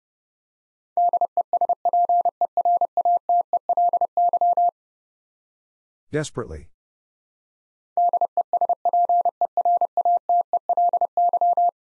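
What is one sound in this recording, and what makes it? Morse code beeps out in quick, steady bursts of a single tone.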